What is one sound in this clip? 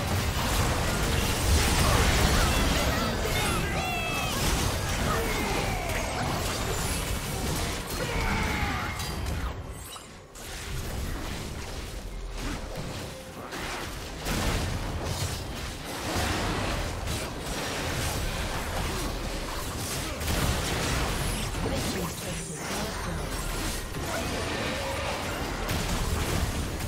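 Video game battle sounds of spells blasting and crackling play throughout.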